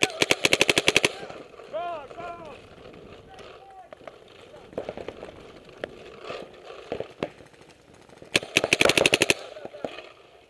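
A paintball marker fires rapid bursts of sharp pops close by.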